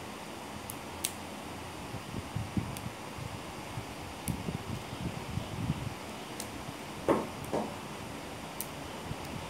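Playing cards rustle and flick softly as they are shuffled by hand.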